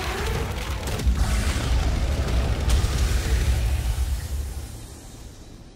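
A fiery blast roars with a deep, heavy rumble.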